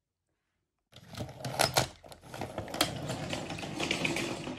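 A toy train rattles along a wooden track.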